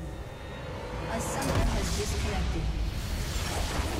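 Magic spells crackle and burst in a game.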